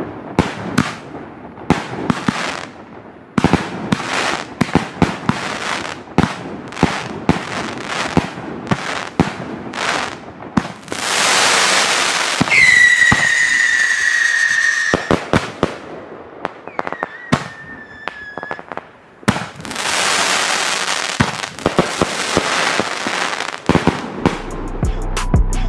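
Fireworks burst with loud bangs and crackles outdoors.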